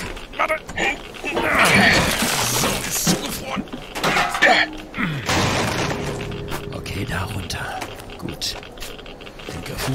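An ice axe bites into hard snow with sharp thuds.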